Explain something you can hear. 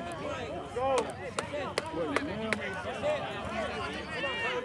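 Football players' pads clack together in a tackle.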